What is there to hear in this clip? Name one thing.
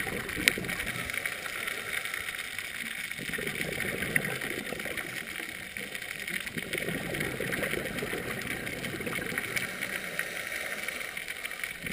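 A steady underwater hiss fills the water, with faint crackling.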